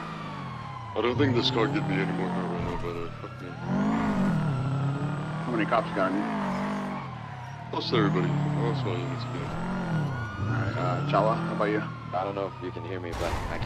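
Tyres squeal on the road.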